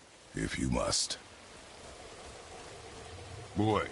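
A waterfall rushes nearby.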